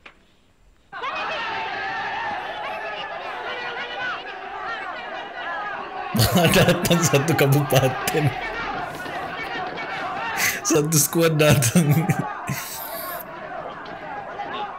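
A crowd shouts and clamours.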